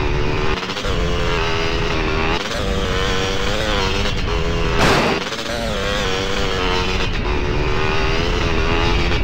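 A motorbike engine revs and whines steadily, rising and falling in pitch.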